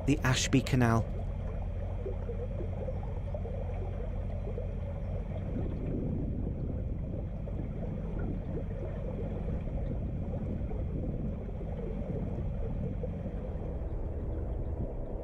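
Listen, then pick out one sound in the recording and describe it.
A boat engine hums steadily as it moves along calm water.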